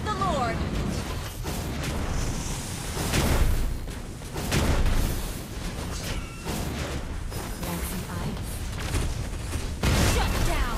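Spell effects whoosh and crackle in bursts.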